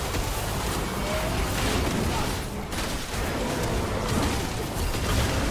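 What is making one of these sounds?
Game spell effects crackle and whoosh during a fast fight.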